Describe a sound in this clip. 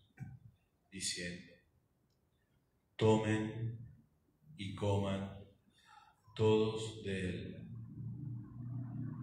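A middle-aged man speaks slowly and solemnly, sometimes chanting, into a microphone in a reverberant room.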